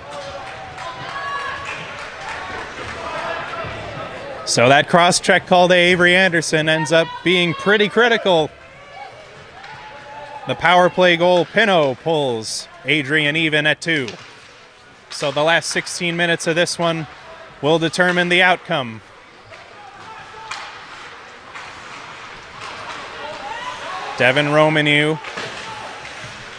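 Ice skates scrape and swish across an ice rink.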